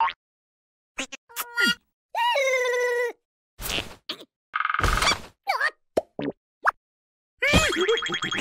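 A second cartoon creature gasps and chatters in a high voice.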